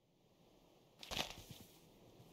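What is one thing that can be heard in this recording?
A block breaks with a short crunch.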